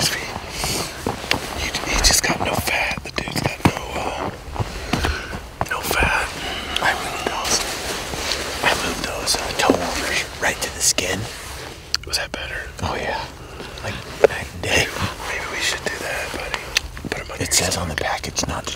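A middle-aged man talks calmly up close.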